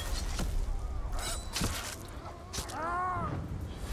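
Blades strike and clash in a fight.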